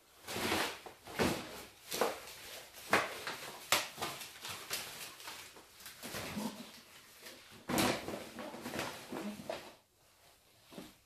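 Plastic bags rustle and crinkle as they are handled.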